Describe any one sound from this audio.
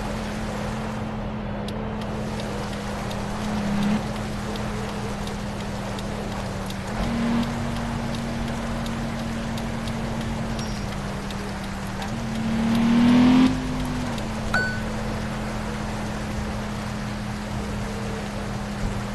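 A car engine hums steadily, its pitch rising briefly as it speeds up.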